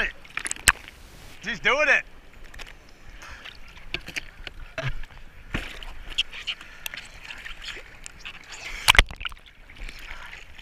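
Water laps and splashes against a surfboard close by.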